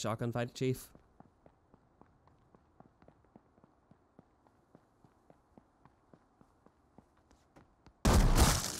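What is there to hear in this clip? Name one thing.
Footsteps run quickly on a hard surface.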